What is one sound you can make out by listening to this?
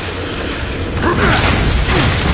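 A loud explosion bursts and rumbles.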